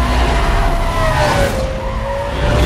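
Tyres screech as a car drifts round a bend.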